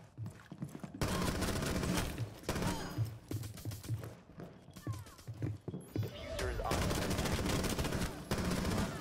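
An automatic rifle fires bursts in a video game.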